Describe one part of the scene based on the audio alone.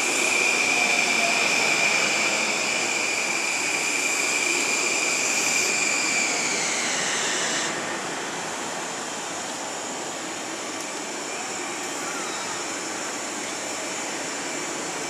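A train rolls past with a steady rumble and rattle.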